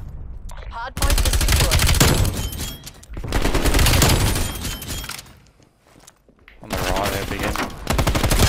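A rifle fires in rapid, loud bursts.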